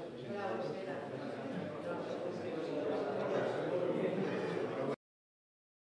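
A group of men and women chat nearby.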